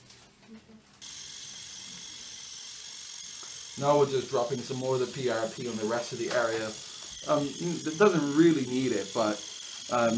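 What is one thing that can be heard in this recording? A small motorized handpiece whirs with a steady high whine.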